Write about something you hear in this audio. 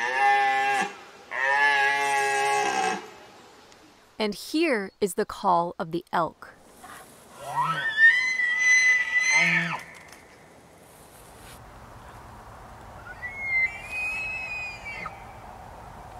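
A stag bellows and bugles loudly, in long rising and falling calls.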